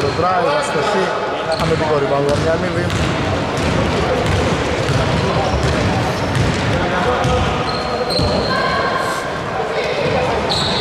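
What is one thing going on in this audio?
Men shout to each other in a large echoing gym.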